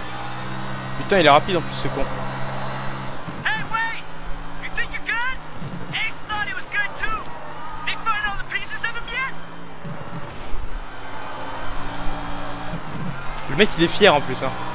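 Car tyres squeal sharply through turns.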